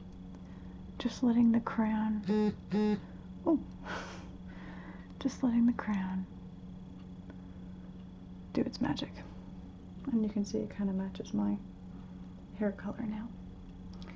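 A young woman talks calmly and close by, in short bursts with pauses.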